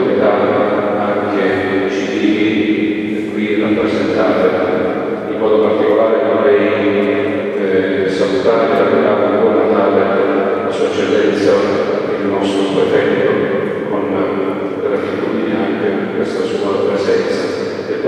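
A middle-aged man speaks calmly into a microphone, echoing through a large hall.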